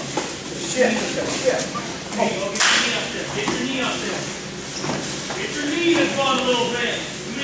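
A man talks calmly, coaching, in a large echoing hall.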